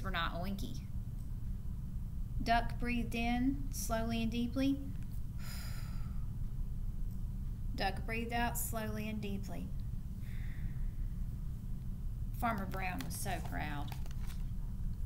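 A young woman reads aloud slowly and expressively, close to a microphone.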